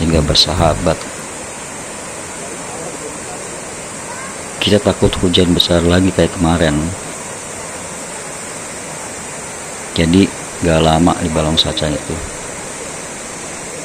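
A shallow stream rushes and splashes over rocks.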